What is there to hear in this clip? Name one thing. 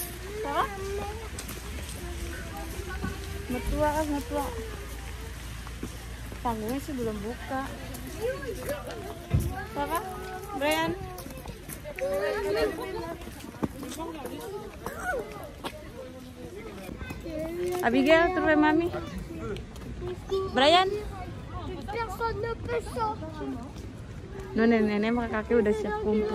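A young girl talks with animation.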